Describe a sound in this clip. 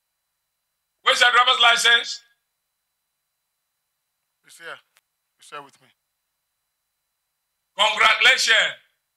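A middle-aged man speaks emphatically into a microphone, in short bursts with pauses.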